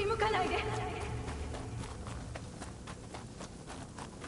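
Footsteps crunch on soft ground.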